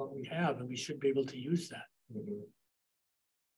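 A man speaks calmly over a microphone.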